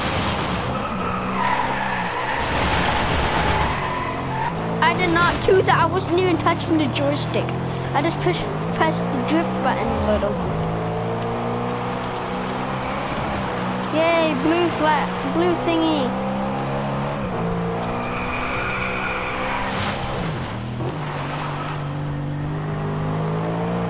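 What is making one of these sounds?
A racing car engine roars and revs steadily through gear changes.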